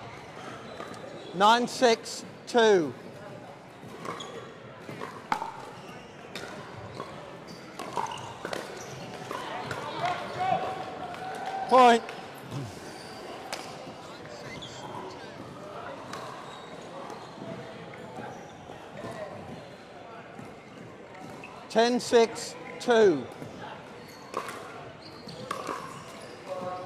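Paddles strike a plastic ball with sharp pops in a large echoing hall.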